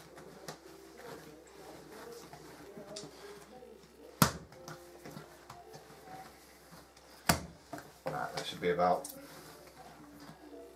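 Hands knead and slap soft dough on a table.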